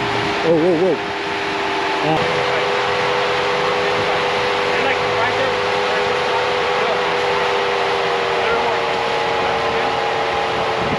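Tyres crunch on snow and rock.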